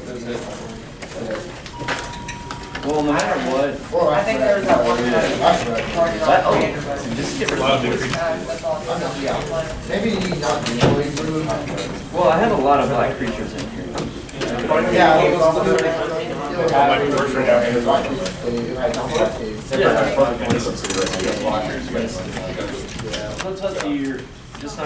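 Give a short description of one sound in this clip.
Playing cards rustle and slide against each other in hands.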